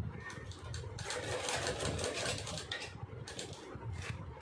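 A domestic sewing machine stitches through fabric.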